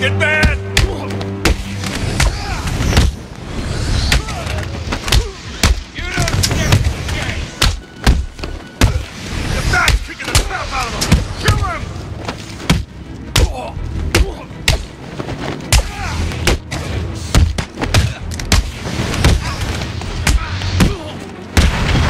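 Punches and kicks land with heavy thuds in a brawl.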